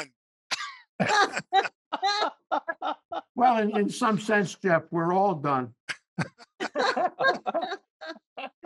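An elderly man talks with animation over an online call.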